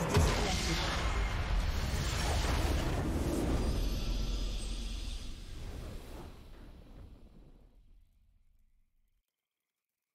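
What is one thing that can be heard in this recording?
A triumphant game fanfare rings out, then slowly fades away.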